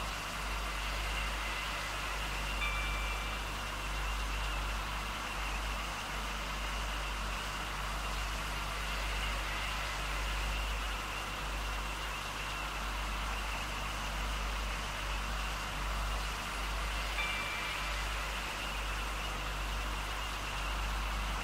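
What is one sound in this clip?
A train rumbles and hums steadily along the track.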